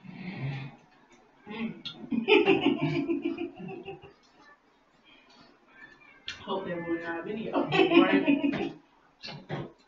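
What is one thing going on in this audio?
Two young women talk with animation close by.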